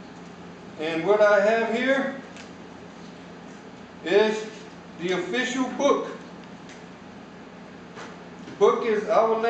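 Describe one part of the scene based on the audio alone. A middle-aged man speaks calmly in a room with a slight echo.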